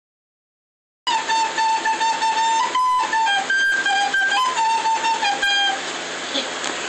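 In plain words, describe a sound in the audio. A girl plays a simple tune on a recorder up close.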